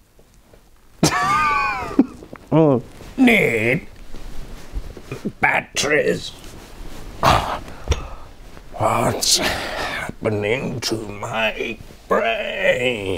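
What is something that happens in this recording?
A young man speaks theatrically, with rising and falling sing-song tones, close by.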